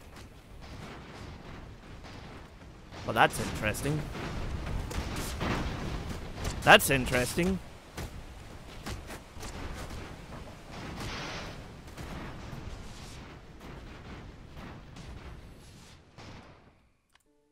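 Weapons fire and blasts go off in a battle between ships.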